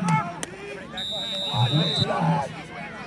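A referee's whistle blows once, shrill and steady.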